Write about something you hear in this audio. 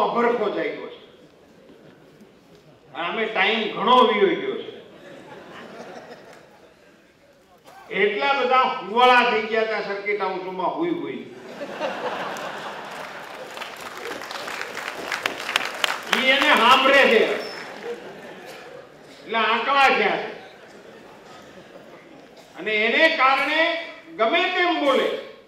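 An older man speaks forcefully into a microphone, with pauses between phrases.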